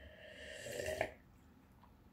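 A man gulps a drink from a can.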